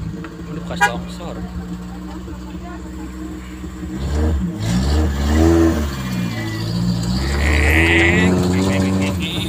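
A vehicle engine rumbles steadily nearby and rises in pitch.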